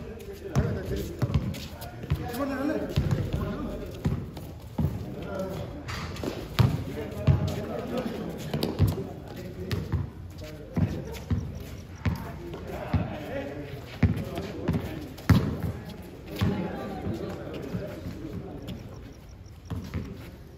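Sneakers squeak and scuff on the court.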